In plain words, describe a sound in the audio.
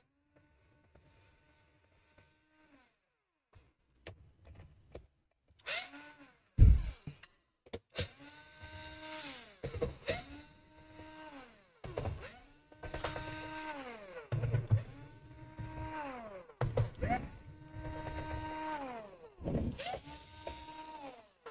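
A cordless electric screwdriver whirs in short bursts, speeding up and slowing down.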